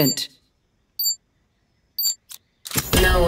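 A game menu gives short bright chimes as a character is picked.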